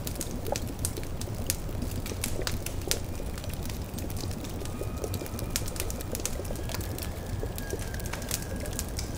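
A fire crackles and pops beneath a bubbling pot.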